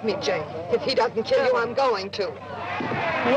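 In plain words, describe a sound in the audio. A man speaks loudly and excitedly.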